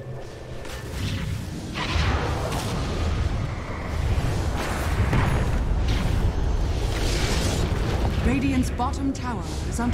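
Magic blasts and weapon clashes crackle in a fast game battle.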